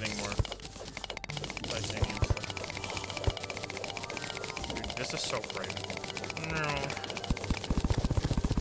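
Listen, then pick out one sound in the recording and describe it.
A pickaxe taps rapidly on stone in a video game.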